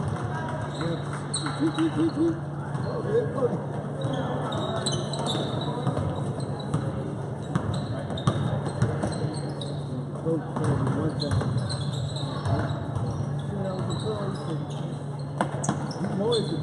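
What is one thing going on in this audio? A crowd of spectators murmurs and calls out in a large echoing hall.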